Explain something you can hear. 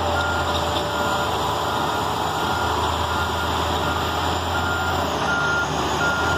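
Heavy earthmoving machines rumble and drone steadily nearby.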